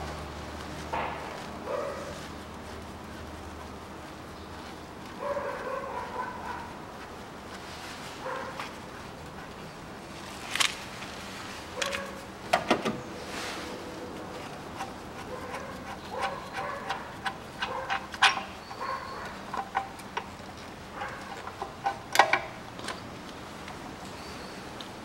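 Metal tools clink and click against engine parts.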